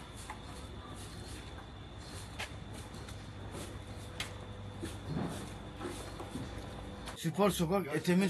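A broom sweeps and scrapes along pavement outdoors.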